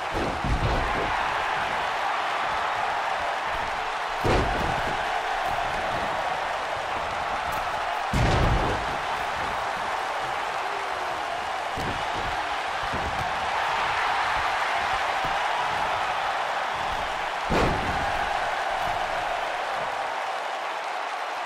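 A large crowd cheers steadily in an arena.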